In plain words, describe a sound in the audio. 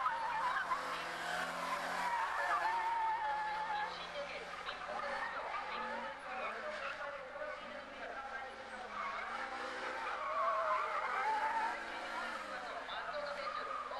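A race car engine revs and whines as the car speeds around the track.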